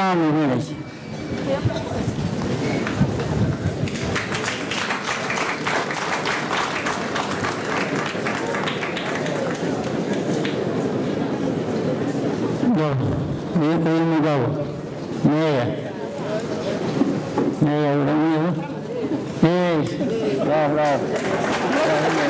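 A woman sings loudly with a wavering, trilling voice through a loudspeaker.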